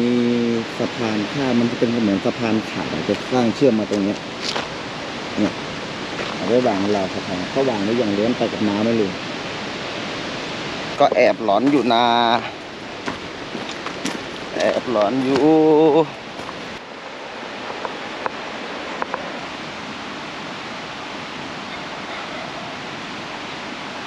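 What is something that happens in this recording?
A river flows and rushes steadily.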